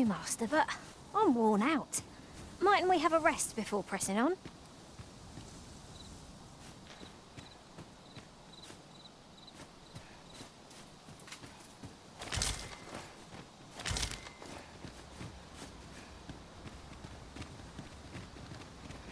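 Footsteps crunch through dry grass.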